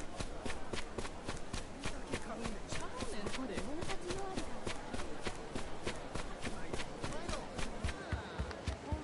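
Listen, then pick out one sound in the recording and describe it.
Footsteps run quickly over hard ground and wooden planks.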